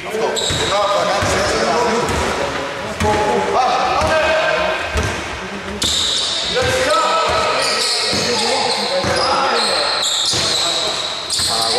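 A basketball bounces on a hard floor in an echoing hall.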